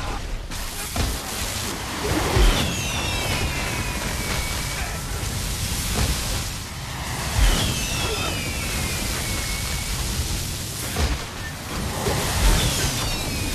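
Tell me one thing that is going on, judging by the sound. Heavy blasts boom now and then.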